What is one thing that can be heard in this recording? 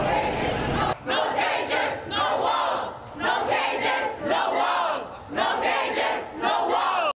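A young woman chants with animation close by.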